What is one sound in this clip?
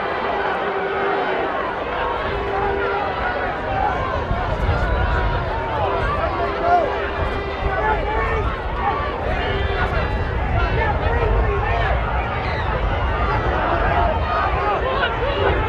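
A large crowd of spectators shouts and cheers outdoors in an open stadium.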